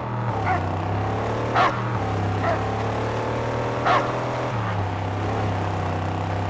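A buggy engine roars steadily as it drives.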